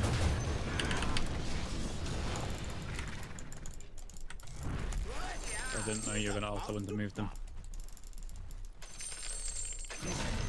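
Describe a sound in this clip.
Game spells and clashes crackle and boom in a battle.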